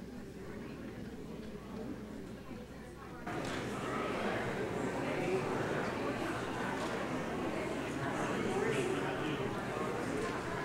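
A man and a woman talk quietly up close.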